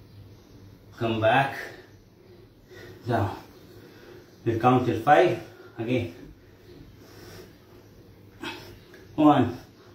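A young man speaks calmly in short phrases, close by.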